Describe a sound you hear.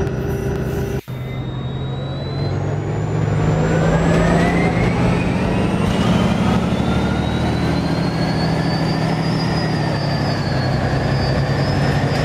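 A bus engine whines higher and higher as the bus speeds up.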